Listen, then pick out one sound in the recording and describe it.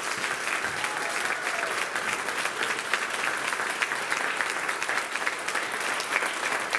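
An audience claps steadily in a large hall.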